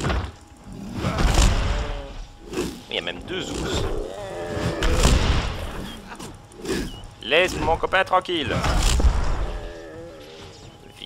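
Heavy weapon blows thud and clang in a fight.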